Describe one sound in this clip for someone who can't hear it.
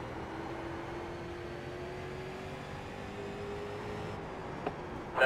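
A race car engine hums steadily.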